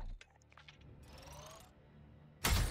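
A bright electronic chime rings with a rising whoosh as a game notification pops up.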